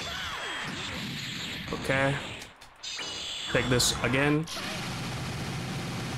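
Gunfire rattles in a quick burst.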